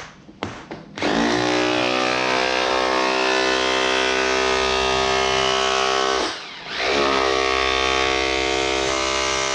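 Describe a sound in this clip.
A power tool whines loudly and steadily, briefly dying down once before speeding up again.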